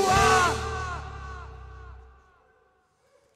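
A rock band plays loudly through loudspeakers and then fades away.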